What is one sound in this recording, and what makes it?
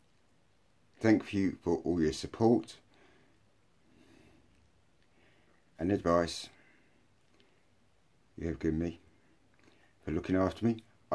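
A middle-aged man speaks calmly in short bursts with pauses, close to a microphone.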